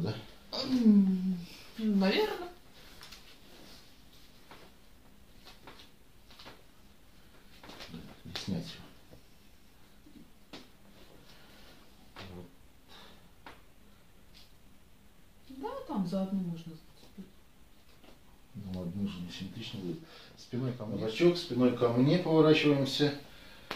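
Hands slap and rub against bare skin.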